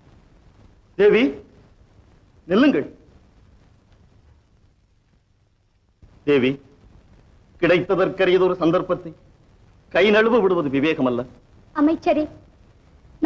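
A young woman speaks with emotion.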